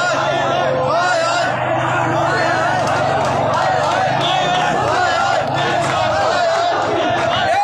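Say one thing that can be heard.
A large crowd of men chants loudly and steadily outdoors.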